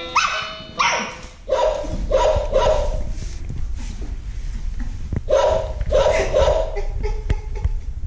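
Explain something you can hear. An electronic play mat plays short chiming tunes as puppies step on it.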